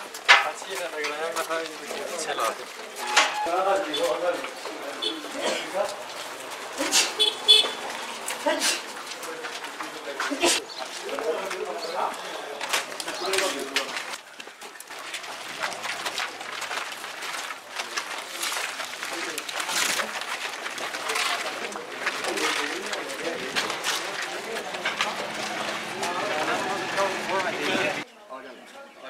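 A group of men talk and murmur nearby outdoors.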